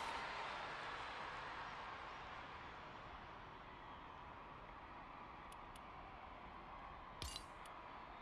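A crowd cheers and applauds, slowly fading.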